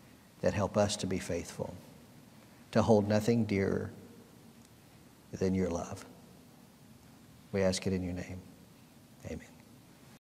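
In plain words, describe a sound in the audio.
A middle-aged man speaks slowly and solemnly into a microphone, with pauses between phrases.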